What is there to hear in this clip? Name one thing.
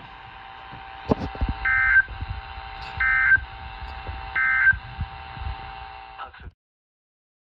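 A small radio plays a crackly, thin broadcast through its speaker.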